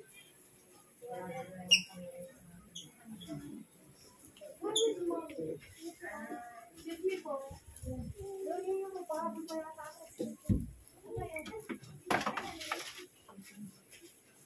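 Women talk casually nearby.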